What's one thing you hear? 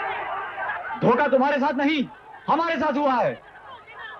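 A man shouts loudly.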